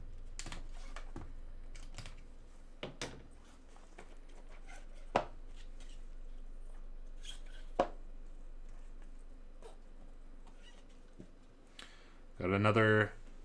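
Plastic card packs rustle and tap as gloved hands handle them.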